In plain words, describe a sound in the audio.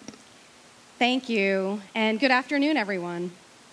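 A woman speaks calmly into a microphone over a loudspeaker, outdoors.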